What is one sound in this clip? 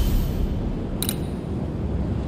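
A short chime clicks.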